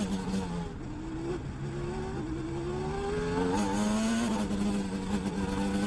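A racing car engine roars loudly close by, its pitch rising as the car speeds up and dropping with each gear change.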